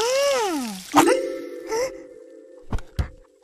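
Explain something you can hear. A young boy's cartoon voice speaks with animation.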